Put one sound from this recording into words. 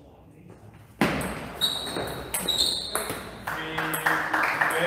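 A table tennis ball clicks quickly back and forth between paddles and the table in a large echoing hall.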